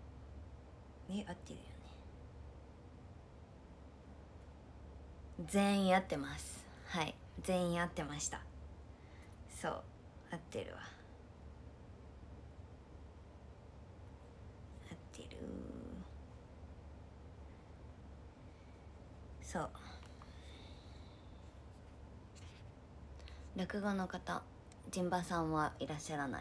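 A young woman speaks close by in short bursts, with animation.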